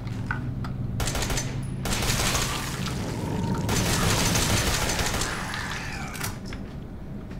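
Gunshots blast in rapid bursts.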